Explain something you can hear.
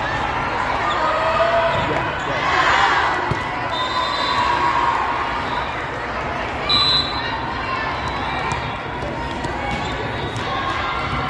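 Young women players shout and call out to each other.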